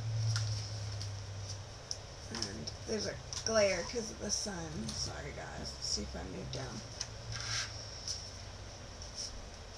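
Small pieces of card tap and slide on a table.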